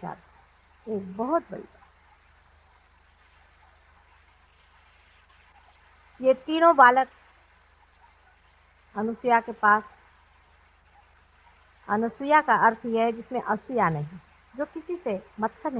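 A middle-aged woman speaks calmly, with pauses.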